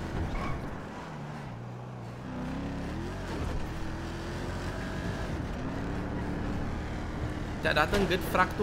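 A car engine hums and revs as it drives.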